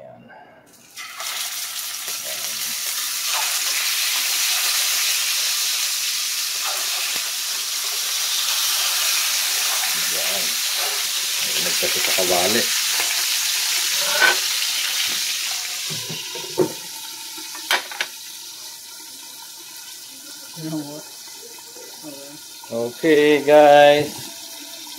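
Hot oil sizzles loudly in a frying pan.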